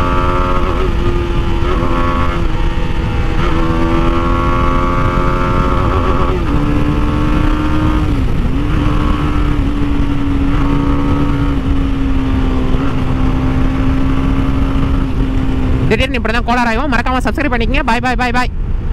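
A motorcycle engine hums steadily, its pitch rising and falling with the throttle.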